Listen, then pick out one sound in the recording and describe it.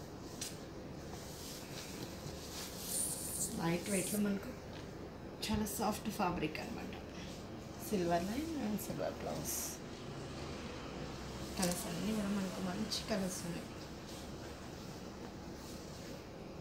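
Silk fabric rustles as it is unfolded.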